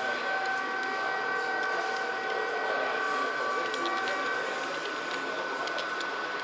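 Model train wheels click over rail joints.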